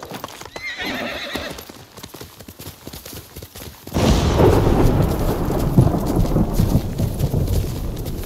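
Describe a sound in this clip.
A horse gallops, its hooves thudding on soft ground.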